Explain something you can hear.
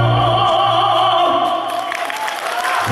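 A young man sings loudly through a microphone and loudspeakers in a large hall.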